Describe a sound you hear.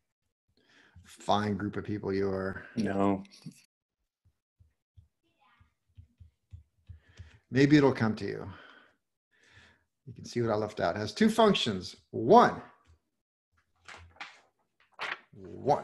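A man speaks calmly into a close microphone, explaining in short phrases with pauses.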